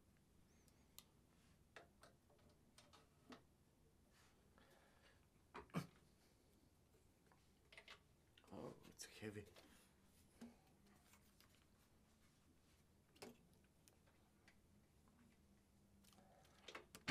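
A saxophone clicks and knocks as it is handled and fitted together.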